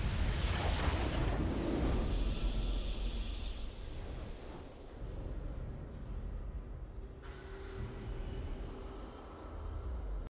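A triumphant victory fanfare plays.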